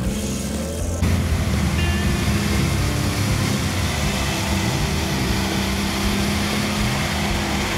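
A jeep engine revs and strains.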